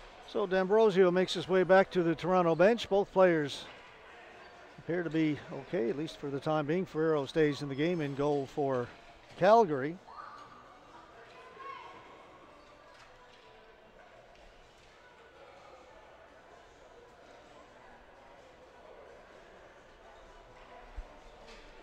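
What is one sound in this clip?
Hockey sticks clack against a ball in a large echoing hall.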